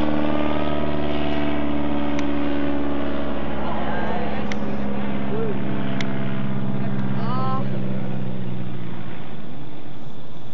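A propeller plane engine drones overhead, lowering in pitch as it passes and fades.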